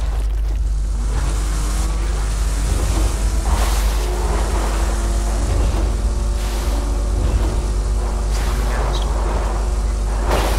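A vehicle engine hums and revs as it drives over rough ground.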